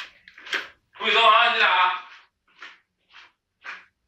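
Slippers shuffle and tap on a hard floor as a person walks away.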